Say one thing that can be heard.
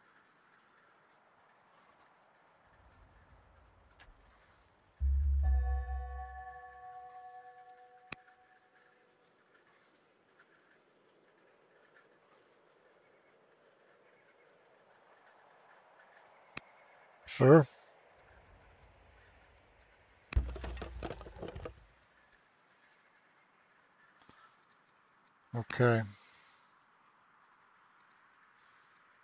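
A soft musical chime rings out and slowly fades.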